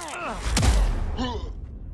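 A heavy punch lands with a thud.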